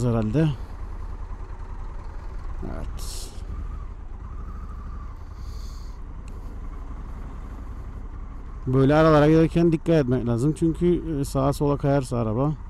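A motorcycle engine idles and rumbles low throughout.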